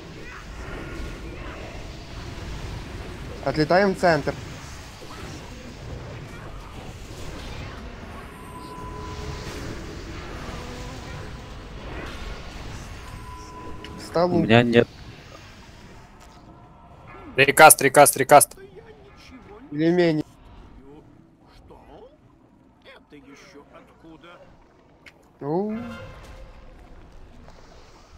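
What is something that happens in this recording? Magic spells whoosh and crackle in a game battle.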